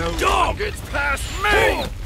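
Swords clash.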